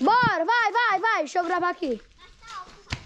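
A young child speaks in a high, lively voice close by.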